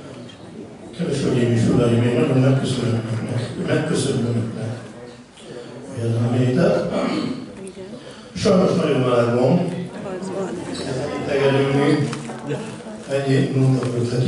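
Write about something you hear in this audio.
An older man sings loudly through a microphone and loudspeakers.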